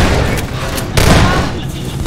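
A pistol fires sharp shots.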